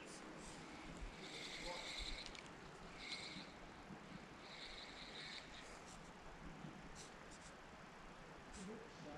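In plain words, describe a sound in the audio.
A fishing reel whirs softly as its handle is wound.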